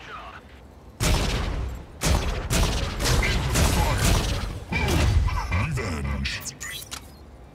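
Heavy gunfire blasts in quick bursts.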